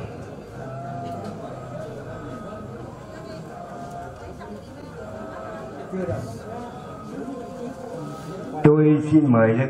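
A crowd of people murmurs a prayer in low voices.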